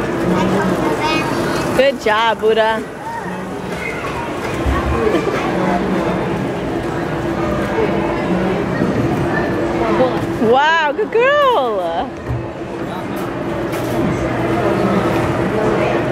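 Many people chatter in a large, busy indoor space.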